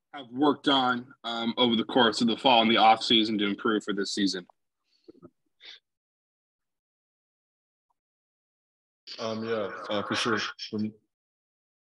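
A man speaks calmly through an online call microphone, in short bursts.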